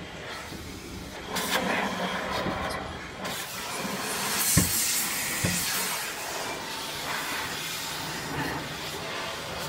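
Water sprays and splashes against a car's windows.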